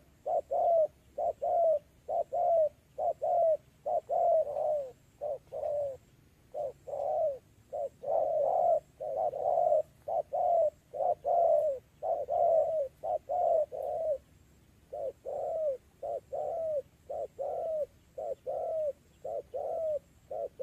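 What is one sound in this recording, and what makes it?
A bird calls over and over with short, hoarse hooting notes.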